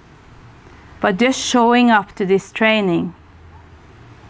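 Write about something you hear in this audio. A woman speaks calmly and briefly into a close microphone.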